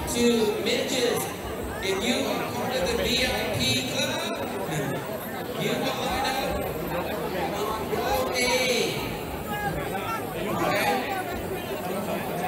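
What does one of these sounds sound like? Men talk nearby.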